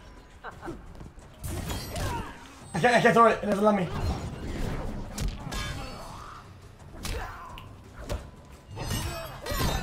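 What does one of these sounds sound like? Punches and kicks land with sharp thuds in a video game fight.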